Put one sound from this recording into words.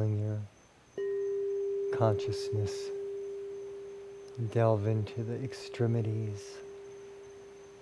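A singing bowl is struck and rings with a long, steady tone that slowly fades.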